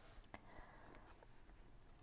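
A paintbrush brushes softly across paper.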